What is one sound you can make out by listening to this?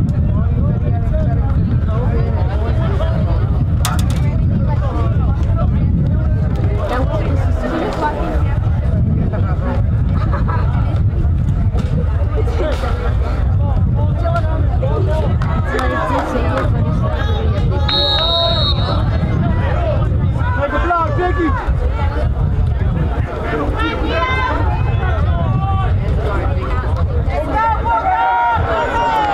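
Men and boys talk and call out nearby outdoors.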